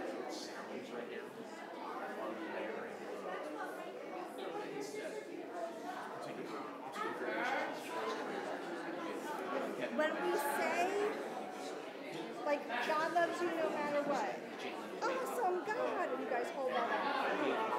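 A woman speaks with animation into a microphone in an echoing hall.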